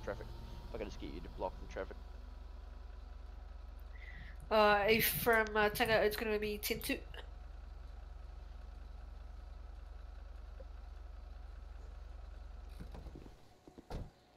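A car engine idles with a low hum.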